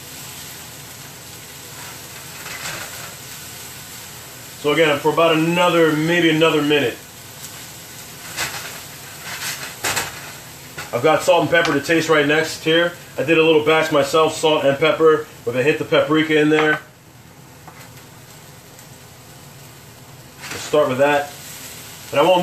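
A wooden spatula scrapes and stirs food in a metal skillet.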